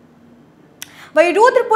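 A woman speaks calmly through a microphone, close by.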